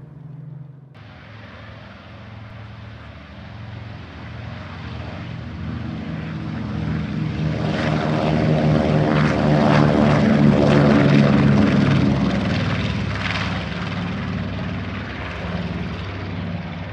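Twin propeller engines roar loudly, growing louder and then fading slightly.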